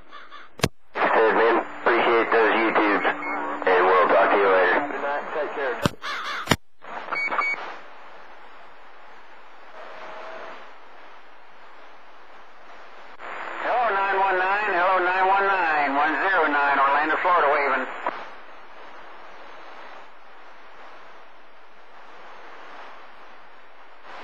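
Radio static hisses steadily from a receiver.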